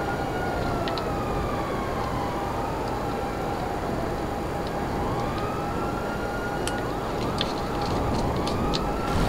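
A motorcycle engine roars steadily.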